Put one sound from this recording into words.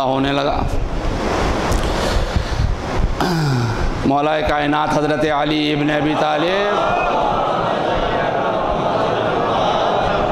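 A middle-aged man recites in a loud, drawn-out chanting voice through a microphone.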